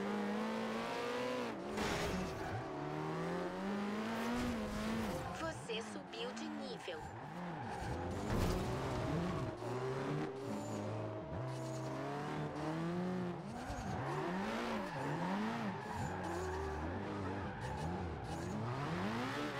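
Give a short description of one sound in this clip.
A car engine revs up and down through gear changes.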